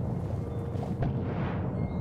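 A springy bounce pad launches with a whoosh.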